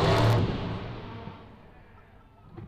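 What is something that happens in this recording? A big truck engine roars loudly, then dies down quickly.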